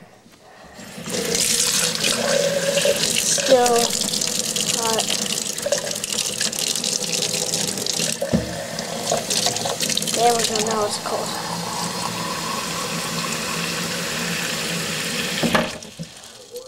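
A fizzy drink pours into a glass and fizzes loudly.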